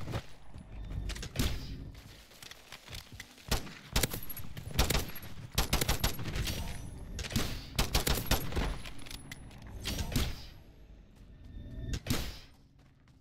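Gunshots crack in short, sharp bursts.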